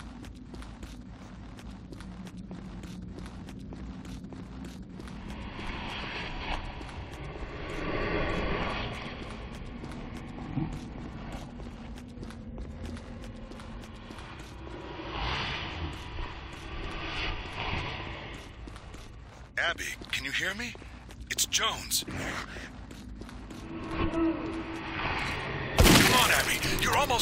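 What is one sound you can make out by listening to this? Footsteps tread steadily on a stone floor.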